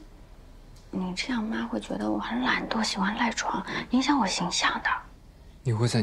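A young woman speaks with complaint, close by.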